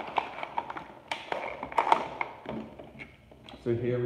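Plastic clicks and rattles as a spinning top is fitted into a launcher.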